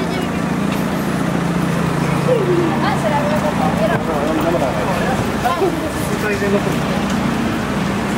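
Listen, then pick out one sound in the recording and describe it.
Adults and children chatter nearby while walking.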